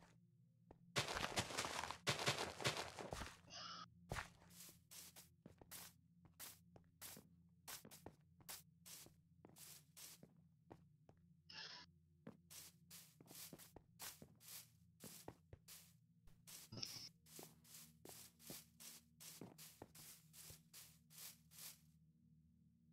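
Footsteps thud on grass and earth in a quick, steady rhythm.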